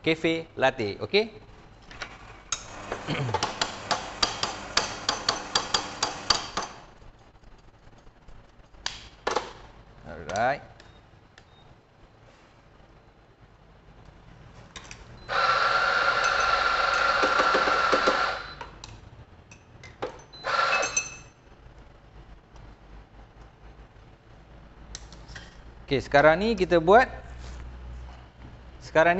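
Metal parts of a coffee machine clatter and knock.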